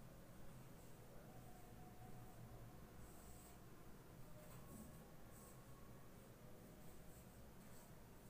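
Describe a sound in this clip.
A marker squeaks in short strokes on a whiteboard.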